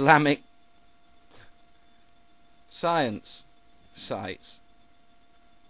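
A middle-aged man speaks calmly and close up, in short bursts.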